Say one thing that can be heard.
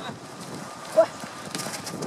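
A football is kicked outdoors.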